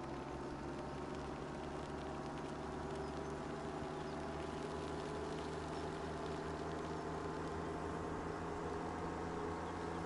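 A towed harrow rattles over the ground.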